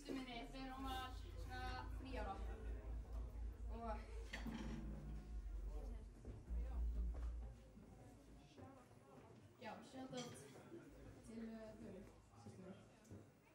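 A drum kit plays a beat.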